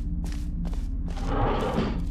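An elevator hums steadily.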